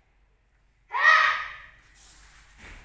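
A child gives a sharp, loud shout.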